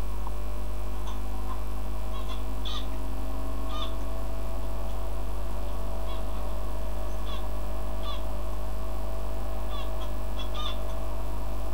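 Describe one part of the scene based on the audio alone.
Small caged birds chirp in short bursts.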